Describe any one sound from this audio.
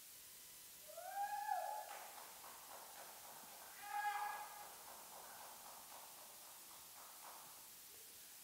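A piano plays a few soft notes that ring out in a large echoing hall.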